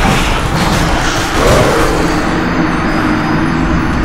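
A blade strikes a monster with heavy, booming blows.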